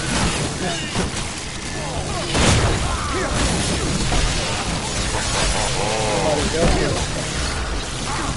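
Heavy blows thud in a fight.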